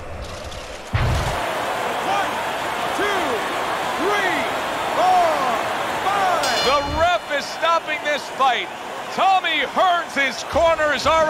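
A large crowd cheers and whistles in an echoing arena.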